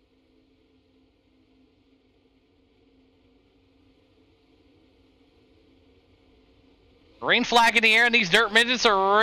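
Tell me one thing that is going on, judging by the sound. Race car engines drone steadily, then loudly rev and whine up and down.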